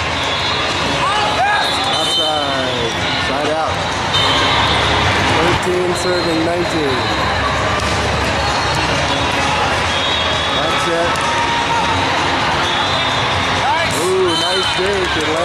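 Players shout and call out to each other across the court.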